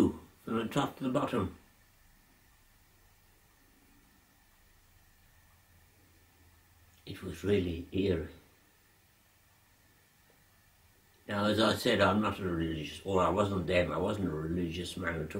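An elderly man speaks slowly and calmly, close by, with pauses.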